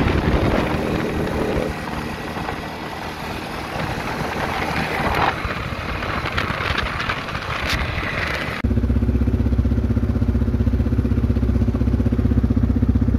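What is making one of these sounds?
An all-terrain vehicle engine runs and rumbles close by.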